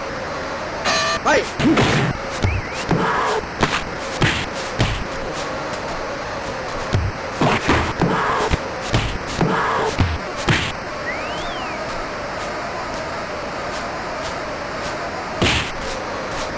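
Punches land with sharp thuds in quick bursts.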